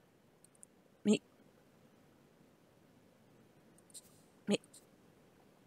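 A short interface click sounds as a menu opens.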